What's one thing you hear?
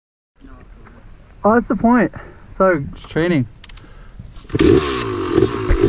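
Another dirt bike engine revs just ahead.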